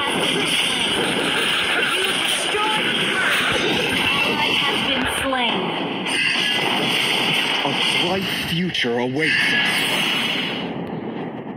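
Magic blasts and explosions crackle and boom in a fast fight.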